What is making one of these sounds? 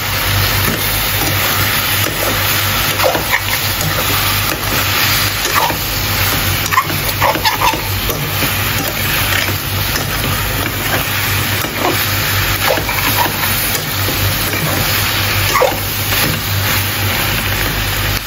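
A spatula scrapes and clinks against a metal pan.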